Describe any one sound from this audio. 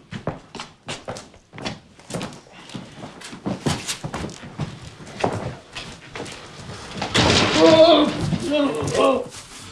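Footsteps shuffle and thud on a wooden floor.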